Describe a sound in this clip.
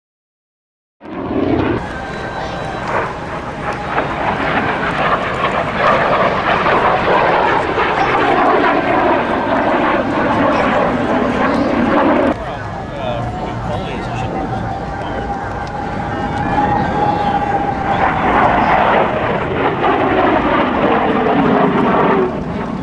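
A jet engine roars overhead, rising and falling in pitch as the plane passes.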